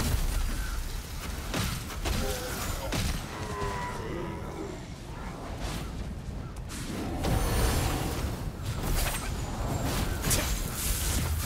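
Blades clash and strike in quick hits.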